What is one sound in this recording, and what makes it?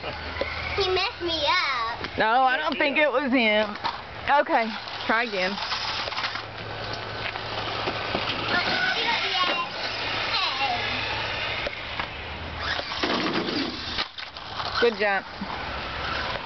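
A young child shouts and squeals excitedly nearby.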